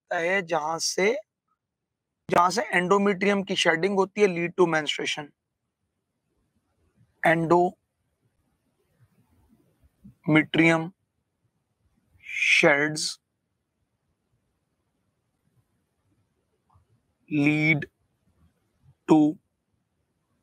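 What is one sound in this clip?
A man speaks calmly into a close microphone, pausing often.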